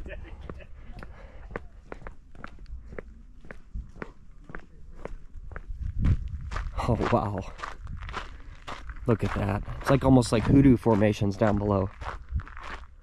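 Footsteps crunch steadily on a gritty path.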